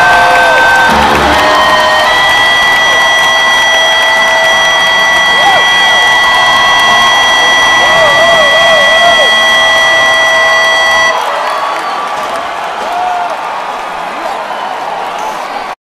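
A large crowd cheers and screams.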